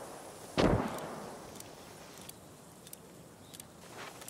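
A revolver cylinder clicks as cartridges are loaded.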